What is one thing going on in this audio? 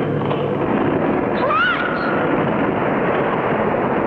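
A young boy speaks in surprise.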